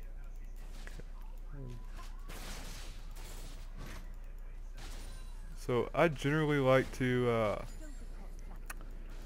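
Magic blasts zap and crackle in a video game battle.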